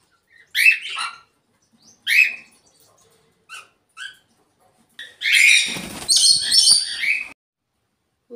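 Parrots squawk and screech loudly.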